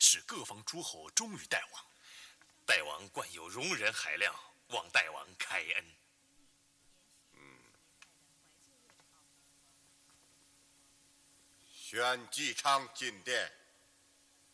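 A man speaks forcefully close by.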